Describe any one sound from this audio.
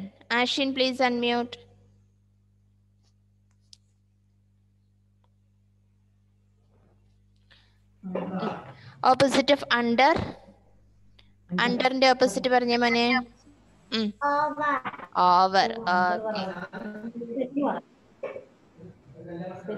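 Children speak over an online call.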